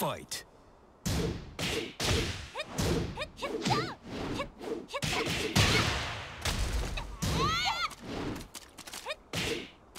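Punches and kicks land with sharp smacks in a fighting game.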